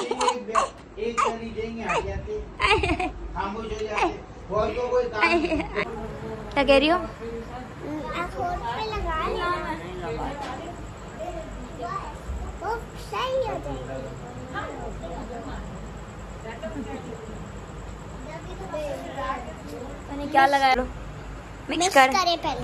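Young children talk and giggle close by.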